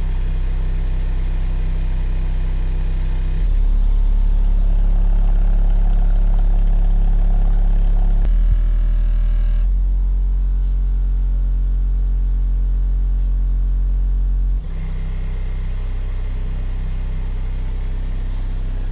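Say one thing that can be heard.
A subwoofer plays loud, deep booming bass tones that rattle a car's interior.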